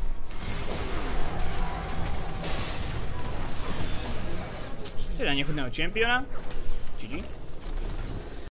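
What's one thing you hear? Video game sound effects clash and whoosh steadily.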